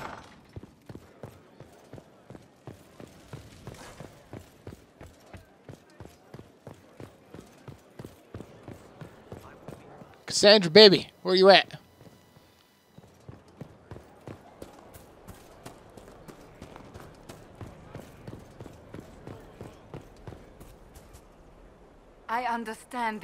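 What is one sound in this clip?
Quick footsteps run steadily over hard stone.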